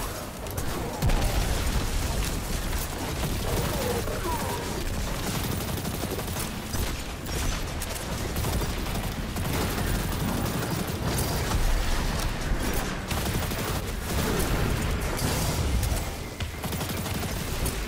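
Energy blasts explode and crackle.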